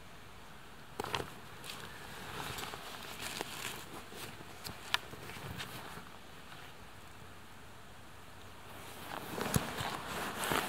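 Fabric rustles close by.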